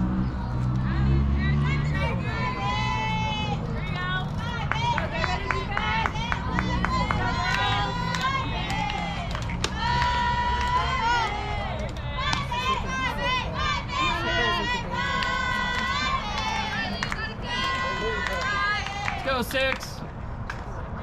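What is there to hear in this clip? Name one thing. Young girls chant and cheer loudly outdoors.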